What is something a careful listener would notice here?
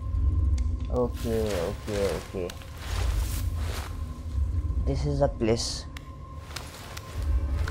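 Hands scrape and grip on rock while climbing.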